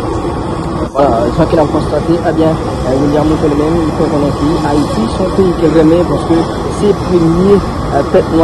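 A man speaks loudly nearby, outdoors.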